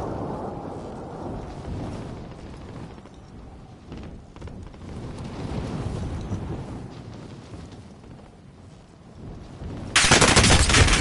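Wind rushes steadily during a parachute descent.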